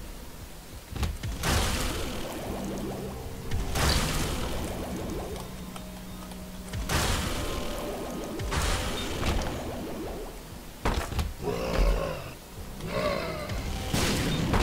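Game sound effects burst and splatter as enemies are hit.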